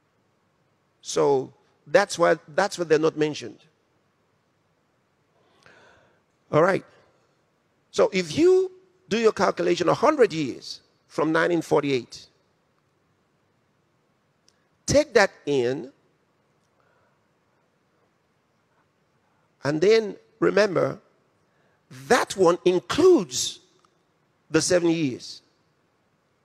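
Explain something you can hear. A man preaches with animation into a microphone, in bursts with pauses.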